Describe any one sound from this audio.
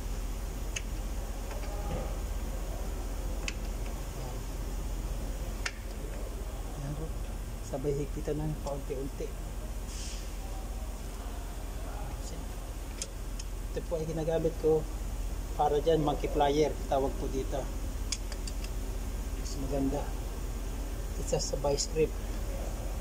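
A ratchet wrench clicks against metal in short bursts.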